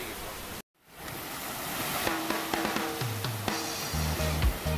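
Waves break and wash onto a pebble shore.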